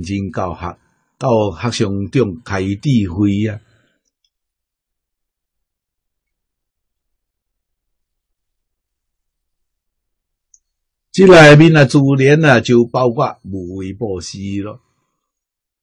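An elderly man speaks calmly and warmly into a close microphone, with long pauses.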